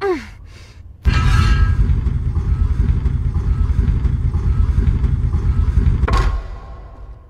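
A heavy mechanism grinds and rumbles loudly.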